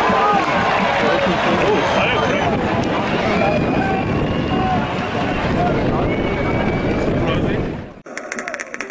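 A large crowd of football fans sings and chants loudly outdoors.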